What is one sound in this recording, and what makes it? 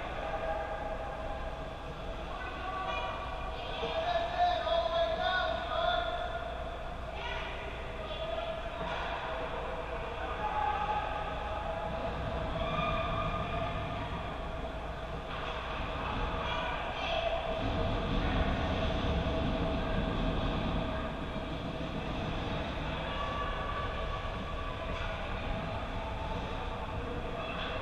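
Skate blades scrape and carve across ice in a large echoing rink.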